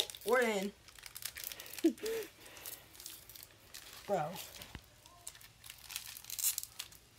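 A card pack wrapper crinkles and rustles.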